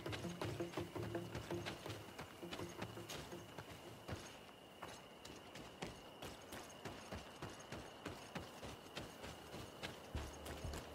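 Footsteps run quickly over gravel and rough ground.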